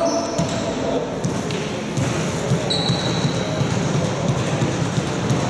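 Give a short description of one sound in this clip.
Footsteps patter across a gym floor in a large echoing hall.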